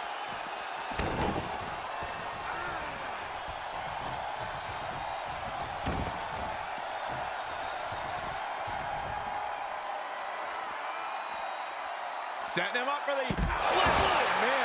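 Heavy bodies slam down with loud thuds.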